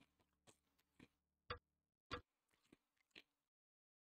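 Mechanical counter wheels click as they turn over.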